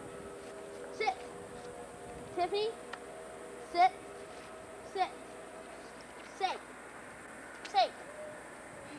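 A Shetland sheepdog barks.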